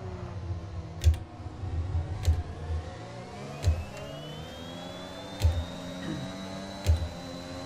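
A racing car's gearbox thumps sharply with each gear change.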